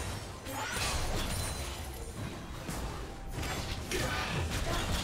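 Game spell effects burst and crackle in a fight.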